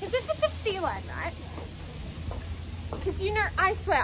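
A young woman talks close by.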